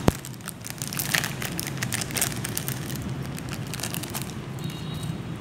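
A plastic packet crinkles and rustles.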